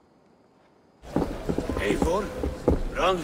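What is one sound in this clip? An older man asks questions loudly over a murmuring crowd.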